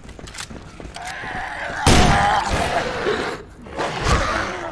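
A zombie snarls and groans.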